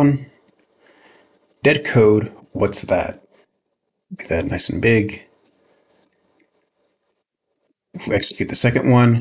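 A young man speaks calmly and close to a microphone, in short bursts.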